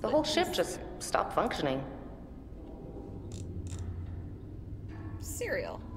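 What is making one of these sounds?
A young woman talks animatedly into a microphone.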